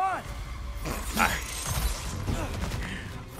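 A heavy weapon swings through the air with a whoosh.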